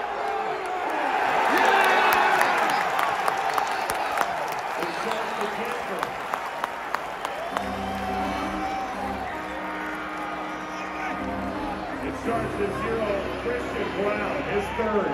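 Fans clap their hands.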